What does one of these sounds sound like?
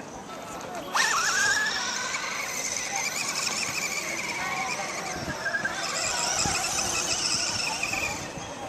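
A toy car's electric motor whines loudly and revs as it races.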